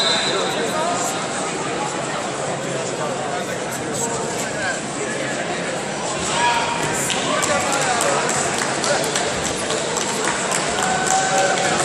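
Wrestling shoes squeak on a mat.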